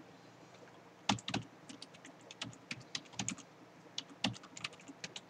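Fingers tap on a computer keyboard.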